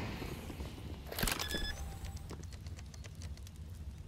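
Electronic keypad beeps as buttons are pressed.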